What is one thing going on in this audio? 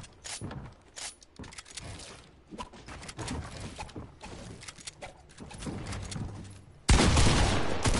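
Game building pieces clack and thud in quick bursts.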